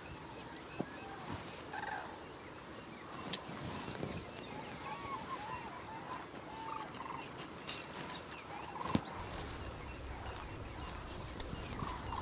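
A knife snaps through plant stems.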